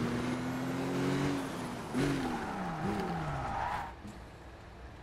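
A sports car engine roars and revs.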